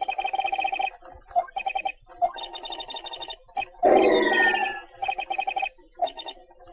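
Short electronic blips chirp rapidly in bursts.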